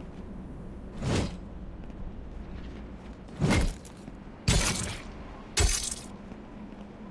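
A weapon whooshes through the air in quick swings.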